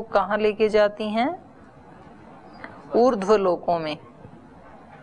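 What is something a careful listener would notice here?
A woman reads out calmly and close to a microphone.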